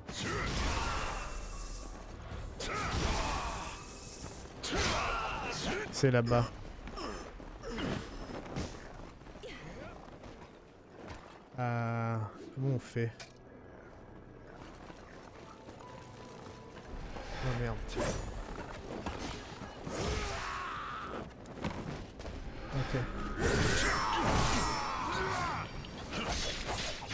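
Swords clash and slash in a fight.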